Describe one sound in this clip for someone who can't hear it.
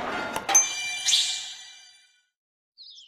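A short chime rings out as the next turn begins.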